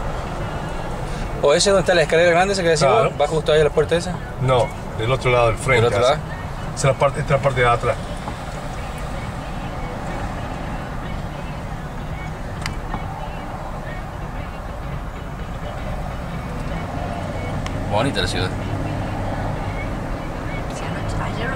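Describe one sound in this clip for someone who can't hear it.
A car hums along a highway with a steady low road rumble.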